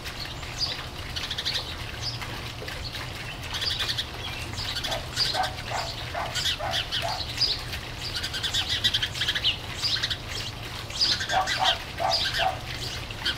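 A small bird chirps repeatedly nearby.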